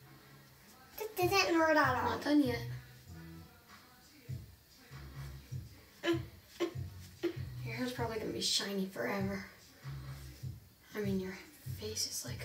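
A young girl talks and squeals with animation close by.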